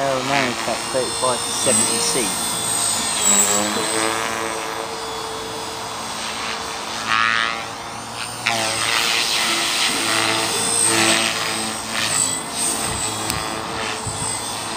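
A small model aircraft engine whines high overhead, rising and falling in pitch.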